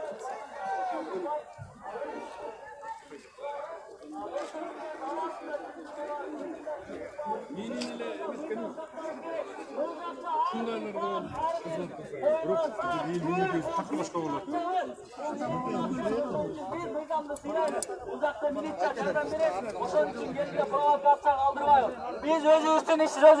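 A crowd of men talks loudly all around, outdoors.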